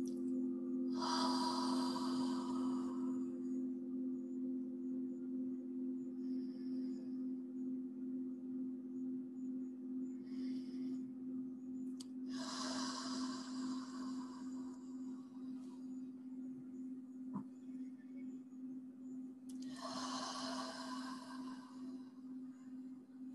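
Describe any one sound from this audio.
A woman breathes out slowly and deeply, close by.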